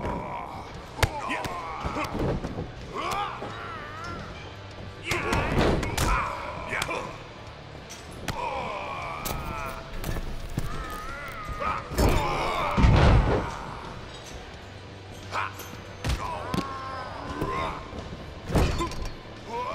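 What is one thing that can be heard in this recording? Heavy thuds of bodies slamming onto a wrestling mat ring out again and again.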